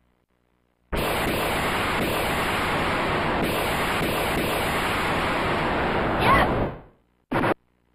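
A loud, steady rushing game sound effect plays, then cuts off.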